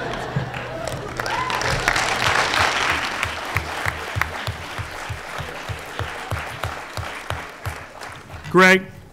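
People clap their hands in applause in a large hall.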